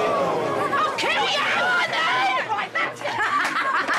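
A young woman shouts angrily.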